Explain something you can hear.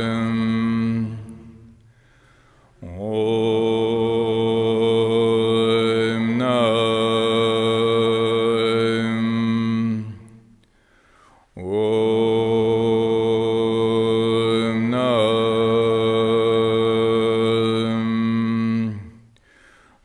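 A man chants in long, steady low tones into a microphone, pausing for breath between phrases.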